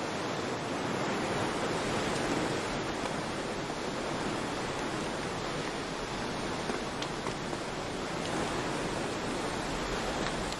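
A waterfall roars in a steady rush of water.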